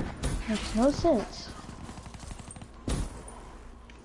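A gun fires loud single shots.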